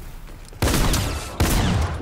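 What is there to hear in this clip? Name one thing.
A rifle fires a shot.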